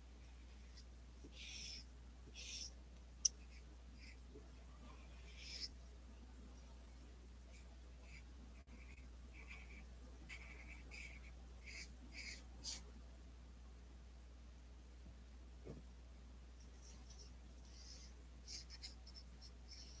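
A marker scratches and squeaks softly on paper in short strokes.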